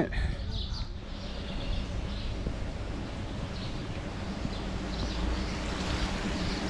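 A stream of water trickles and splashes over rocks.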